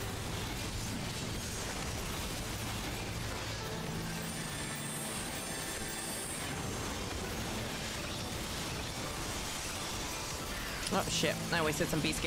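Orchestral game music plays steadily.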